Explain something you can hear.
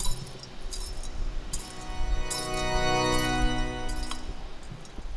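A censer's chains clink as it swings.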